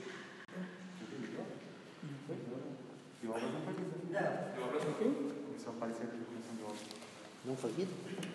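Papers rustle.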